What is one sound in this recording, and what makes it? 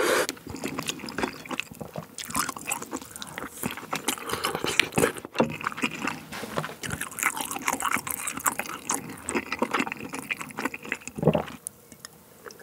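A young man chews and slurps food loudly and close to a microphone.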